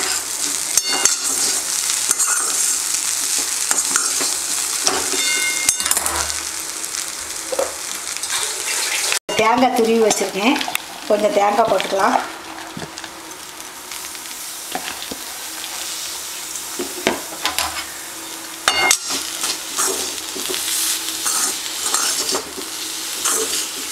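A metal spatula scrapes and stirs food in a metal pan.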